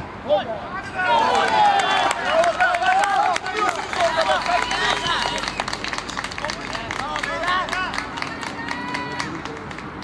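Young men shout and cheer loudly outdoors.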